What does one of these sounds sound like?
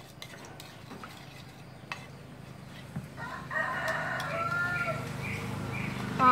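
A spoon clinks against a ceramic bowl.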